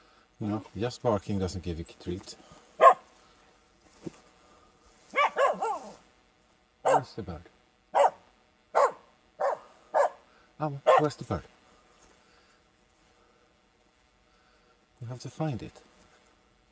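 A dog barks in short bursts nearby.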